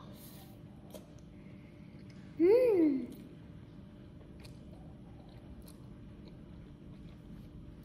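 A young girl slurps noodles.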